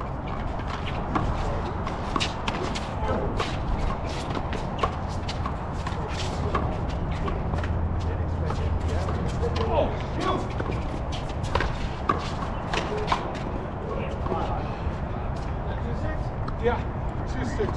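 A ball smacks against hard walls and echoes.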